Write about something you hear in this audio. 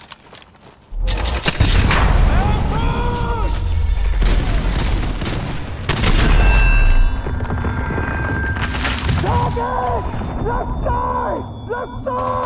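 Explosions boom loudly and rumble.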